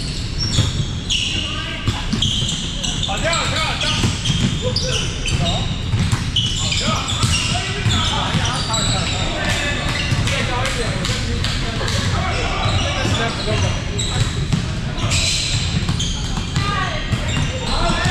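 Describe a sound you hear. A volleyball thuds as it is hit.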